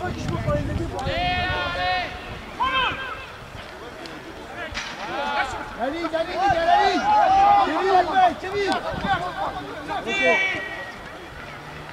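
Men shout across an open field outdoors.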